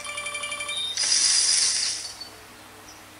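A mobile game plays a short rushing whoosh.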